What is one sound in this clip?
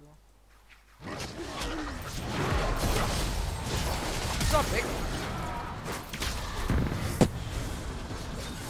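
Spell effects whoosh and crackle in a video game battle.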